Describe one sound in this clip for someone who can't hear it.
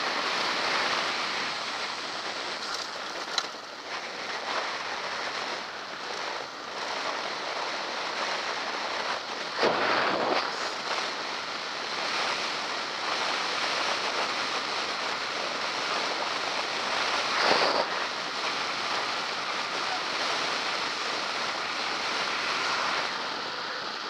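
Wind rushes steadily past as a bicycle rides along a road.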